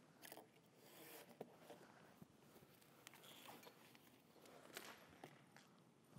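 Objects rustle and knock as a person handles them.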